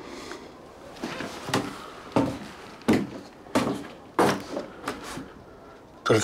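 Heavy footsteps thud on wooden floorboards.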